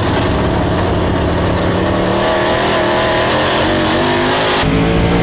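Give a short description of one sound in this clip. A race car engine roars loudly at high revs, close by.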